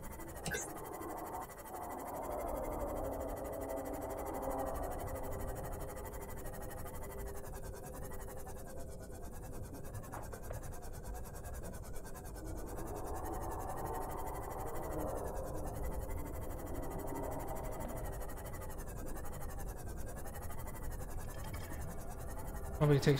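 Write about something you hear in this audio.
A small submarine's engine hums steadily underwater.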